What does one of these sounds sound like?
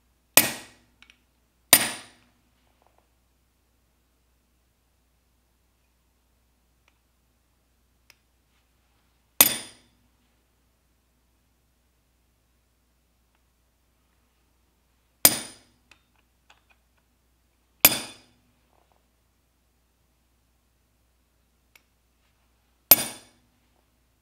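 A hammer strikes a metal punch with sharp, ringing taps, a few seconds apart.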